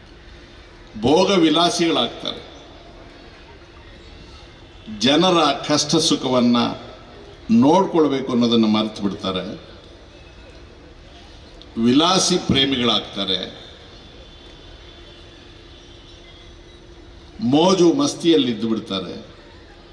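An elderly man speaks forcefully into a microphone over loudspeakers outdoors, in short bursts with pauses.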